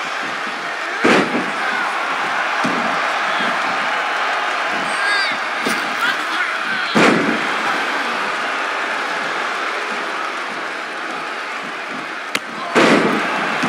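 Bodies slam onto a wrestling mat with heavy thuds.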